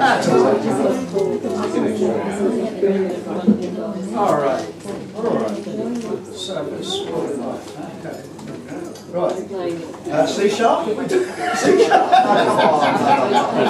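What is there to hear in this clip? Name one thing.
Acoustic guitars strum together.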